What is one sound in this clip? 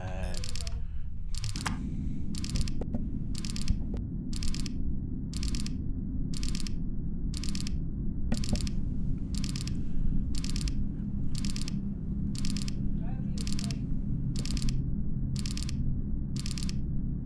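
A control console beeps in a steady, regular pulse about once a second.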